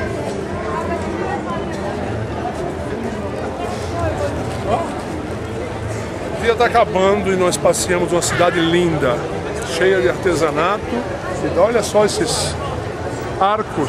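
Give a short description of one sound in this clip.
A crowd murmurs in the background outdoors.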